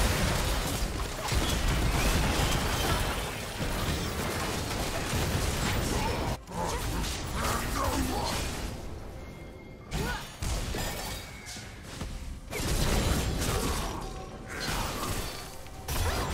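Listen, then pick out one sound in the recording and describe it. Video game spell effects blast and crackle during a fight.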